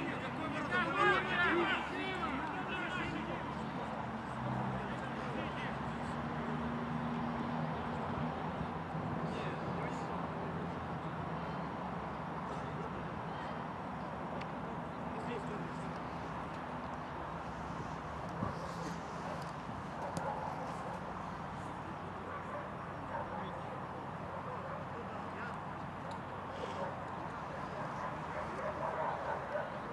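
Men shout and talk in the distance outdoors.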